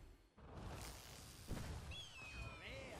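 A magical pack bursts open with a shimmering whoosh.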